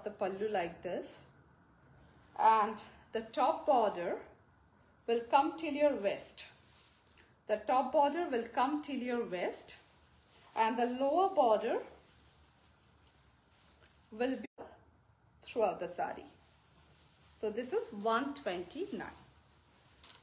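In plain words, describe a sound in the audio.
A woman talks calmly and close by, in short phrases with pauses.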